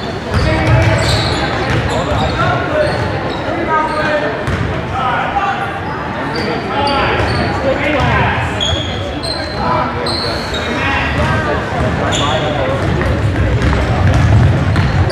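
Spectators nearby chatter and call out.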